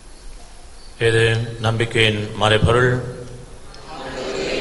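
An elderly man speaks through a microphone in a reverberant hall.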